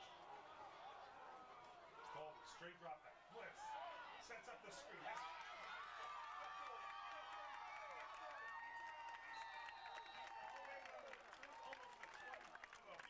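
A crowd of young men cheers and shouts loudly outdoors.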